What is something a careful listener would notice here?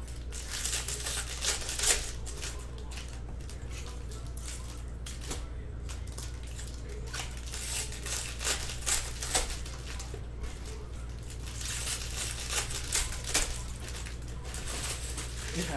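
Plastic wrappers crinkle and rustle as they are handled.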